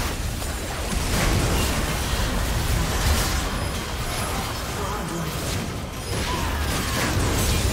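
Magic effects burst and crackle in a fast game battle.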